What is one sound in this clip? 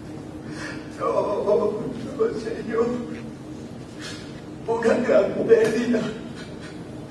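An elderly man speaks with feeling into a microphone.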